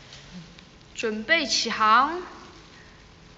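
A young woman speaks briefly and expressively, close to a phone microphone.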